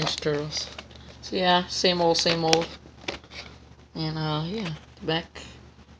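A plastic toy package crinkles as it is handled.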